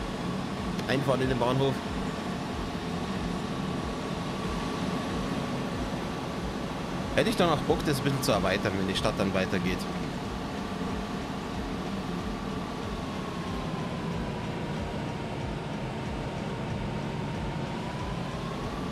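A train rolls steadily along the track with a humming motor.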